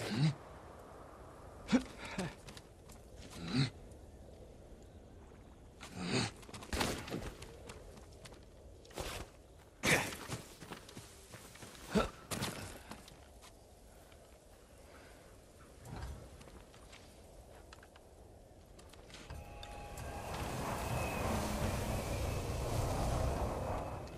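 Wind blows across open ground and grows stronger.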